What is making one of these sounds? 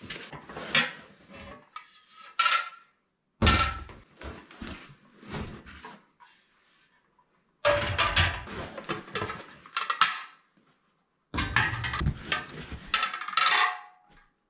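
Metal discs clank softly as hands lift them out.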